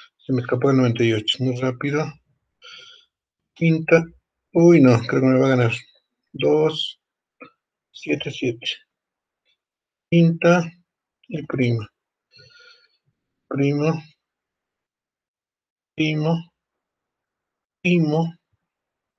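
A man speaks in short, calm phrases over an online call.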